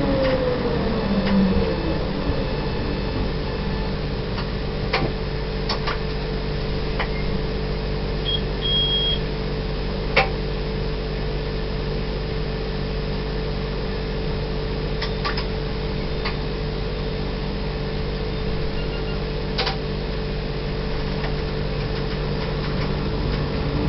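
A train rumbles and hums steadily along the rails.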